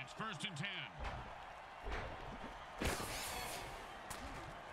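Armoured players collide with heavy thuds.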